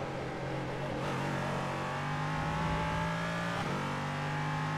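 A race car engine shifts up a gear with a brief dip in pitch.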